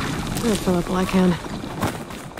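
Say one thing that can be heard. A robotic creature lets out a short, wavering electronic call.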